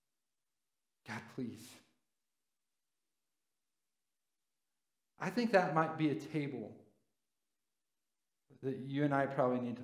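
A man speaks calmly to an audience through a microphone, in bursts with long pauses.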